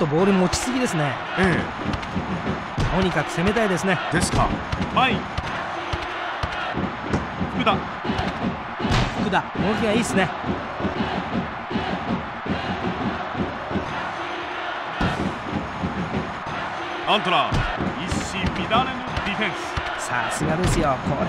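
A stadium crowd cheers and murmurs steadily throughout.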